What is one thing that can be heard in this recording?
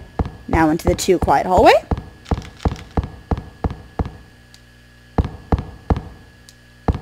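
Footsteps patter quickly on a hard floor in an echoing corridor.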